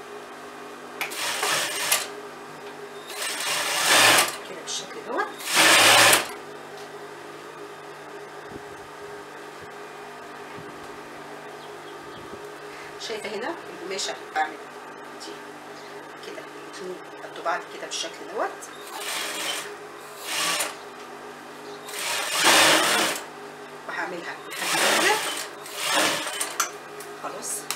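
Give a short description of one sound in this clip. A sewing machine runs in short, loud bursts of stitching.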